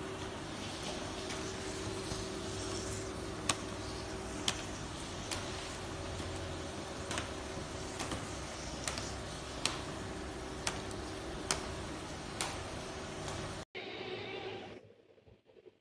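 A paging machine's conveyor belt whirs and rattles.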